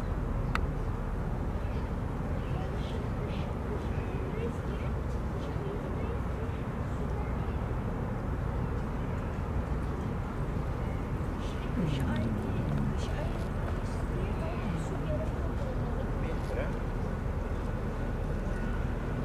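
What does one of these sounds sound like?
A barge's engine rumbles low and steadily across the water.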